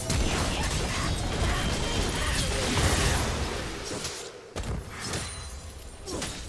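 Video game spell effects burst and clash in a fight.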